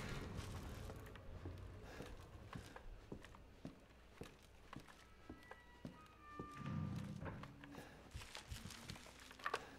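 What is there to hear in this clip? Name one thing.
Footsteps creak slowly up wooden stairs.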